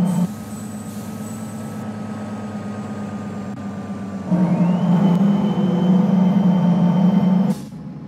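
A bus engine hums steadily, growing louder as the bus pulls up to a stop.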